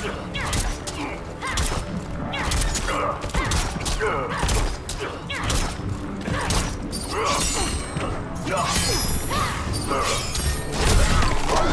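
Punches and kicks land with sharp thuds in a video game fight.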